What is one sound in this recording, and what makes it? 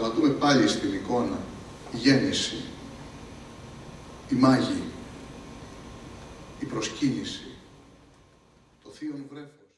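A man speaks slowly and dramatically into a microphone, in a large echoing hall.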